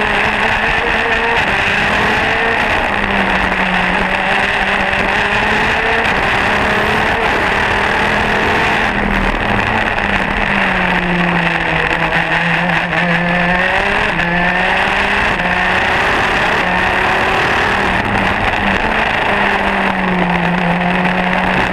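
A kart engine whines loudly close by, its pitch rising and falling as it revs.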